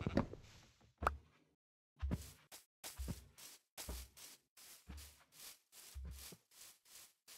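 Footsteps thud softly on grass at an even pace.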